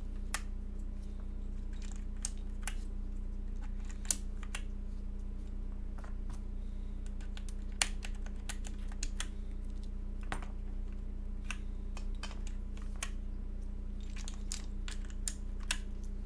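Keyboard keys click and clack under typing fingers.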